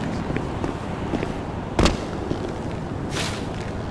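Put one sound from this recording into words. A heavy metal door clanks open.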